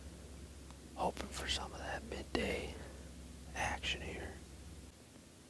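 A man speaks quietly and calmly close by.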